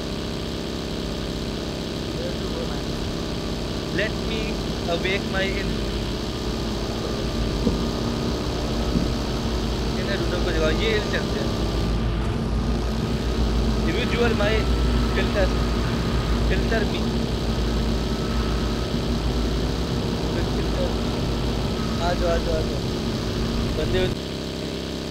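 A buggy engine roars steadily as it drives.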